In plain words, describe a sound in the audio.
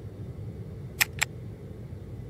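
A finger taps a laptop key.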